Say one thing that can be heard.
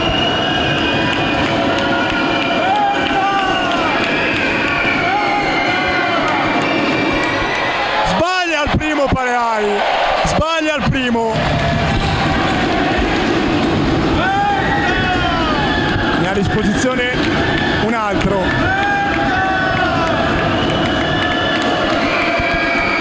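A basketball thumps as it is dribbled.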